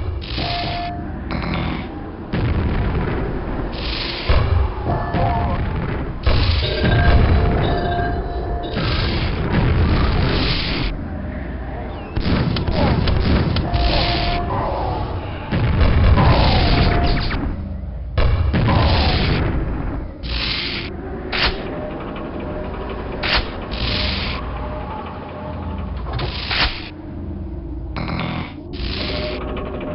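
Electric bolts crackle and buzz.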